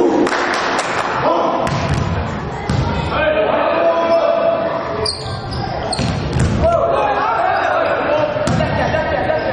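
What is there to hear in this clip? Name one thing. A volleyball is struck by hand in an echoing sports hall.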